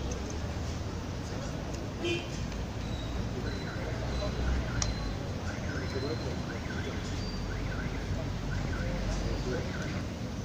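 Several men talk and murmur close by in a crowd.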